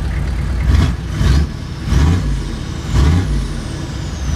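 A pickup truck engine revs in short bursts.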